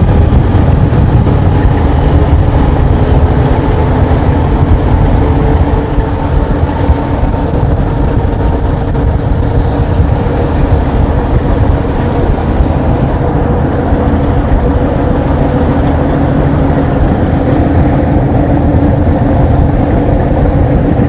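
A train rumbles steadily along the tracks at speed, heard from inside a carriage.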